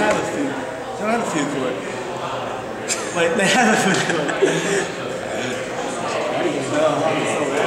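Two young men talk casually with each other at close range.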